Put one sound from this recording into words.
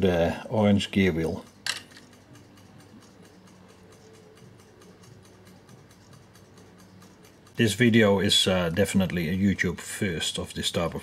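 An electric meter's mechanism ticks softly and steadily.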